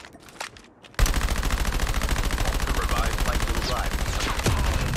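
A rifle fires rapidly in a long burst.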